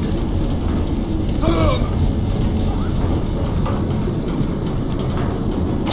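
A fireball bursts with a loud whoosh and roars.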